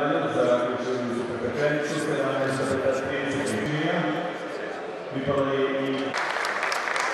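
A man speaks over a loudspeaker in a large echoing hall.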